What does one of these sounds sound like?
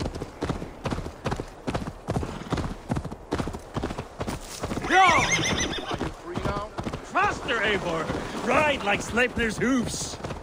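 A horse gallops, its hooves thudding steadily on the ground.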